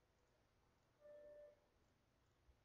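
A computer alert chime sounds once.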